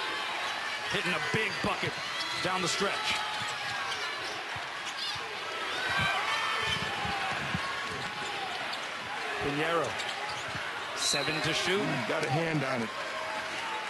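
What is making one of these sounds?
A crowd murmurs throughout a large echoing arena.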